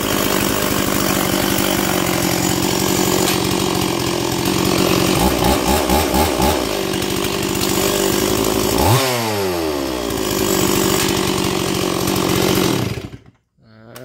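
A two-stroke chainsaw idles.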